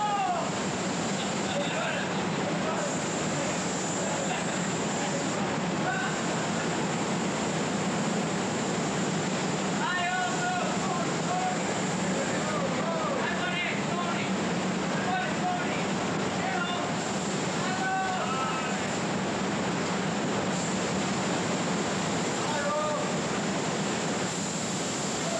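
Spray guns hiss steadily in an enclosed booth.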